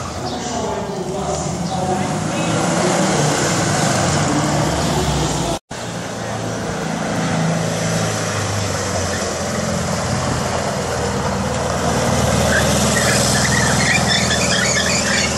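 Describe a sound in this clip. An old car engine putters and revs as the car drives past.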